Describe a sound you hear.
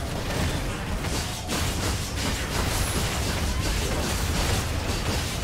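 Magic spells crackle and whoosh in a game battle.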